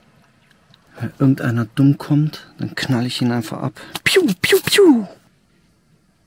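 A young man speaks with animation close by.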